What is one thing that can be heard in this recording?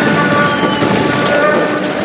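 Fire roars loudly.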